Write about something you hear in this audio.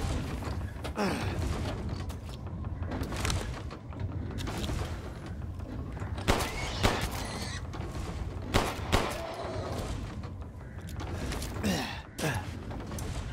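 A dog yelps and whimpers.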